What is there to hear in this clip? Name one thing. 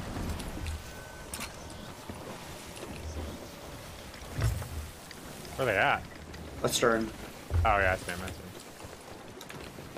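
Ocean waves wash and roll against a ship's hull.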